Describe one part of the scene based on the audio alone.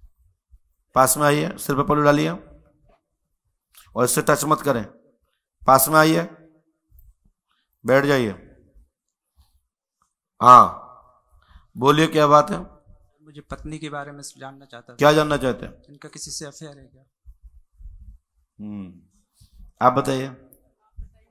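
A young man speaks into a microphone in short phrases with pauses.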